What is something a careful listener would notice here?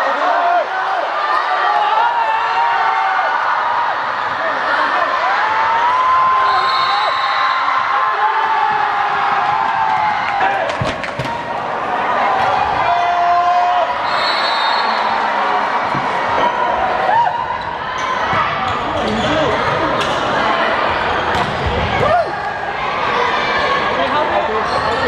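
Young women shout and call out to each other across an echoing indoor hall.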